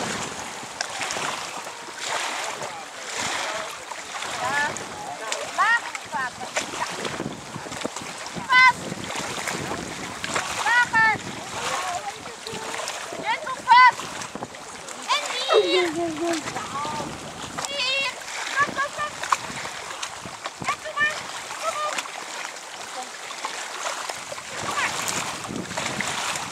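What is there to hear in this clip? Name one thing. Water splashes and laps around a small inflatable boat, outdoors in wind.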